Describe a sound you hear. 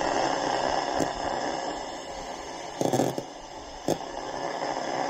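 A plastic rod taps and scrapes against a metal coil.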